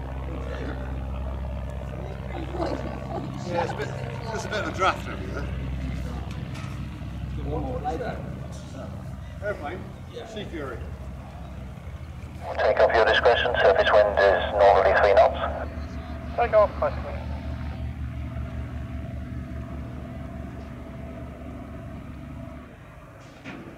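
A propeller aircraft engine drones and throbs steadily nearby.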